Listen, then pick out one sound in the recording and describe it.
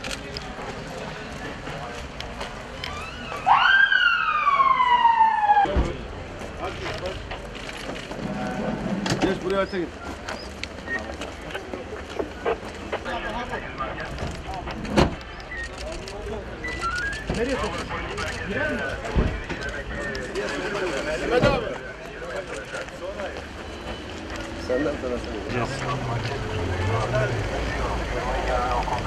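Several men's footsteps fall on pavement.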